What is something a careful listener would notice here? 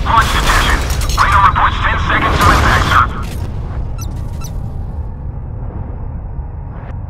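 Heavy naval guns boom with a deep rumble.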